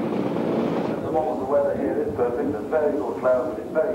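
Several motorcycle engines rev up and down in bursts.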